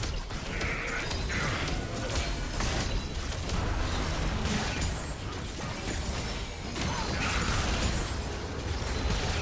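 Sharp hits and blasts ring out in a fast battle.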